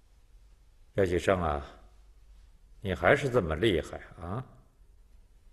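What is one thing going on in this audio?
A middle-aged man speaks calmly.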